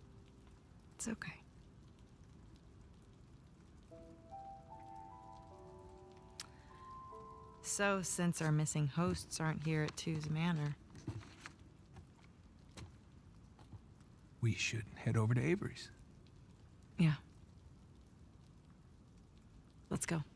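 A young woman speaks softly and warmly, close by.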